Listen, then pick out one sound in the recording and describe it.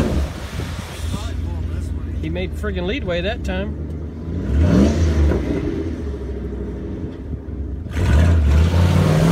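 An SUV engine revs under load.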